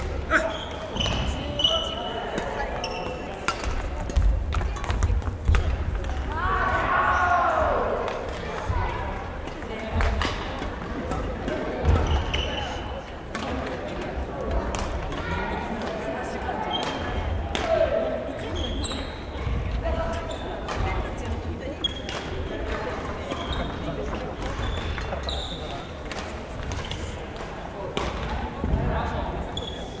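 Shuttlecocks are hit sharply with rackets again and again in a large echoing hall.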